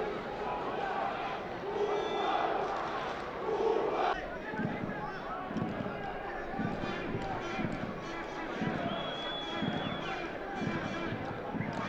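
A stadium crowd roars and chants throughout.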